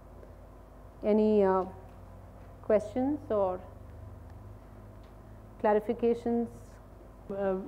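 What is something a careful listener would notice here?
A woman speaks calmly into a microphone, with pauses between phrases.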